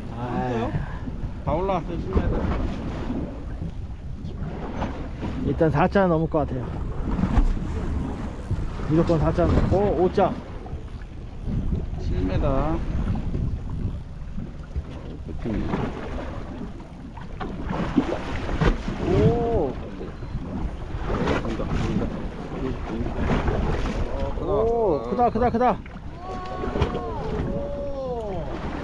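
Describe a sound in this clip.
Waves splash against the side of a boat.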